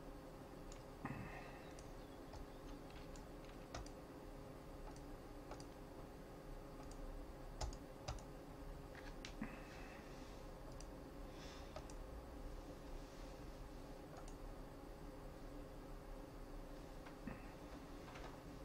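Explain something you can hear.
Short electronic clicks and blips sound as game menus open and change.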